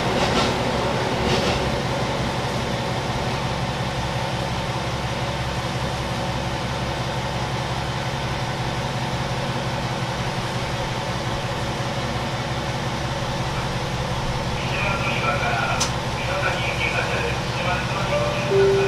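A train engine hums with a steady low rumble.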